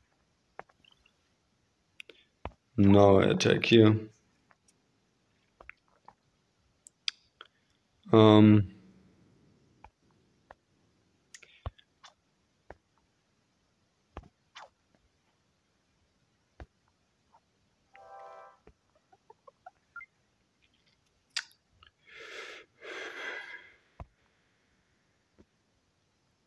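Soft clicks sound as buttons are tapped.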